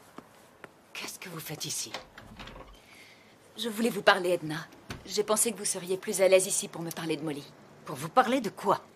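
An elderly woman speaks with concern nearby.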